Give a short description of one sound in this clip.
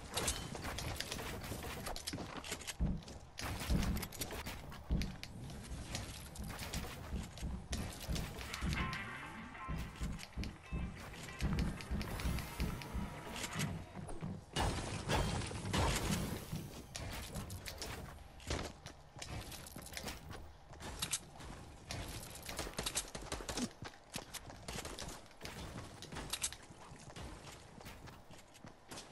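Building pieces snap into place with sharp, rapid clacks.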